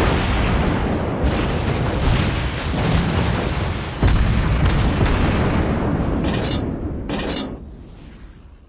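Naval guns fire in heavy, rumbling booms.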